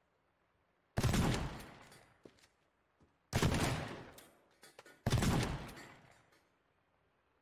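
A shotgun fires loudly, with a booming echo.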